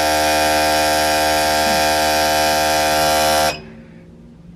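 A machine hums and buzzes steadily, then stops.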